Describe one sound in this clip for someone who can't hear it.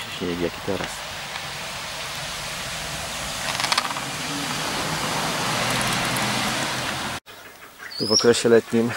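Ducks call out with loud, nasal honks.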